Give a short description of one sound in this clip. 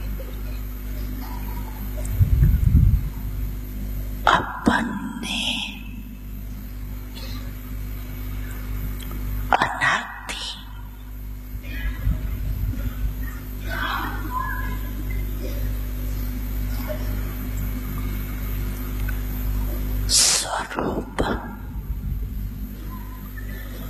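An elderly woman speaks calmly into a microphone, heard through a loudspeaker.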